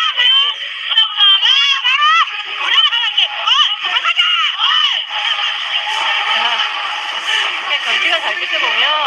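Young women shout and cheer excitedly.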